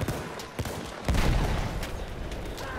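A shell explodes nearby with a deep boom.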